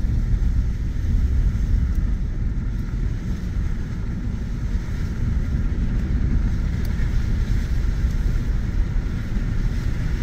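A vehicle engine hums steadily from inside the cab.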